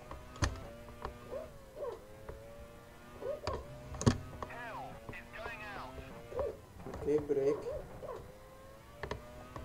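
A racing car engine whines at high revs, dropping in pitch at each gear change.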